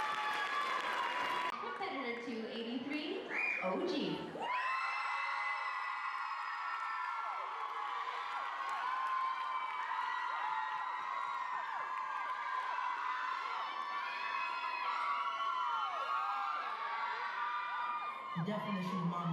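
An audience cheers and screams loudly in a large hall.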